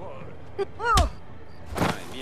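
A baseball bat strikes a body with a sharp thud.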